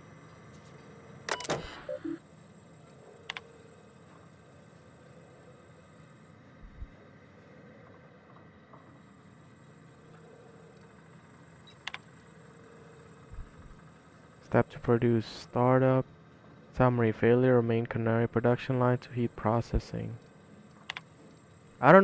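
A computer terminal beeps and clicks as options are selected.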